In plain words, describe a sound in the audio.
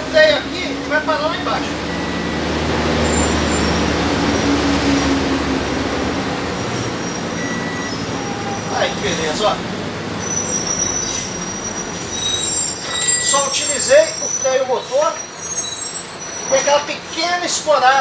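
A middle-aged man speaks with animation nearby.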